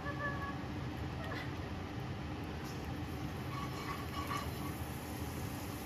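A spatula scrapes against a metal pan.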